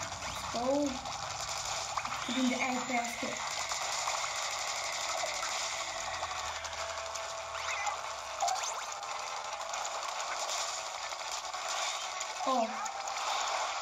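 Cartoonish game character voices chirp briefly through a small speaker.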